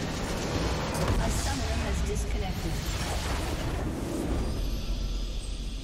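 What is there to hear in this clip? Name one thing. A large crystal shatters with a deep, rumbling explosion.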